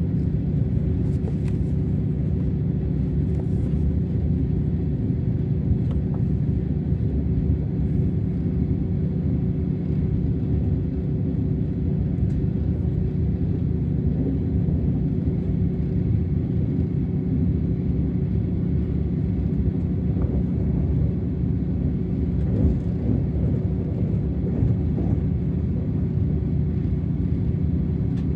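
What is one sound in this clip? A train rumbles steadily along the track with a low hum.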